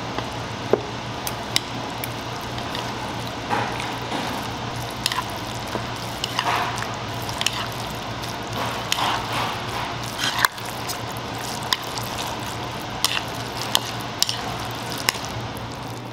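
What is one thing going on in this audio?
Metal chopsticks clink against a bowl.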